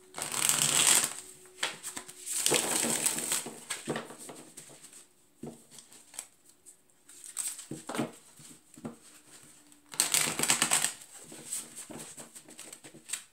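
Hands shuffle a deck of cards with quick riffling bursts.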